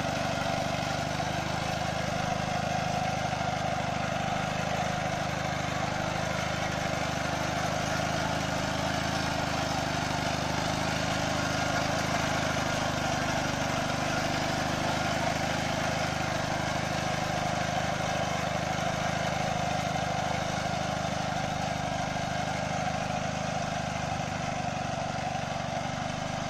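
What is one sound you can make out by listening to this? A small two-wheeled tractor's engine runs close by with a steady chugging rumble.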